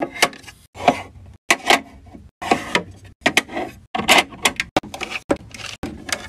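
Acrylic fingernails tap on plastic jar lids.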